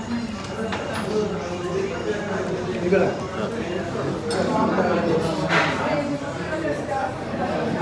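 A busy room murmurs with distant chatter and clinking.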